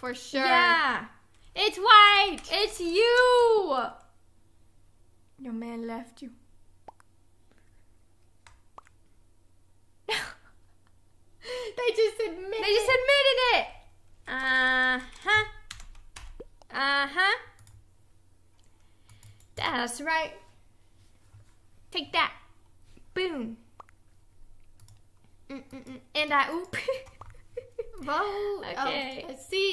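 A young woman talks and exclaims with animation into a microphone close by.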